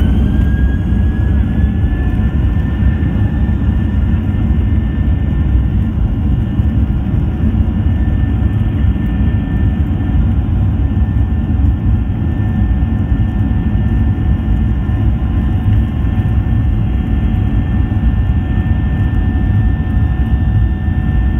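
Wheels rumble along the runway.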